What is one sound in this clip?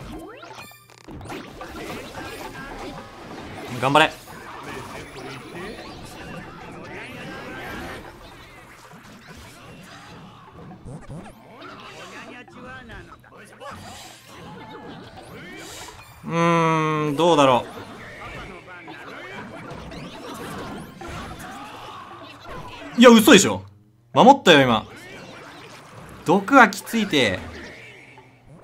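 Cartoon battle sound effects clash, zap and whoosh.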